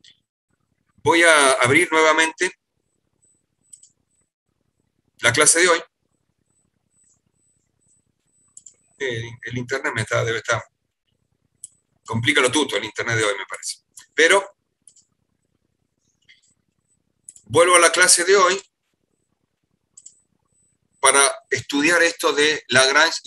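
A middle-aged man speaks calmly in bursts over an online call.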